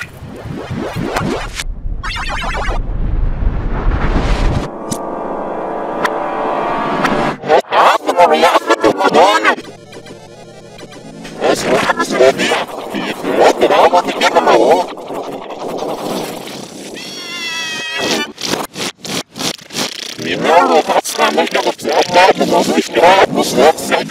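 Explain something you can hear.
Bleeping video game sound effects chirp.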